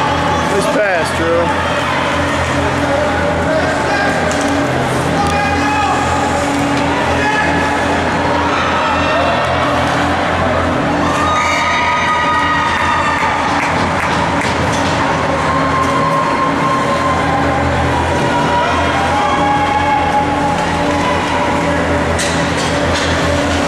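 Spectators chatter and call out in an echoing arena.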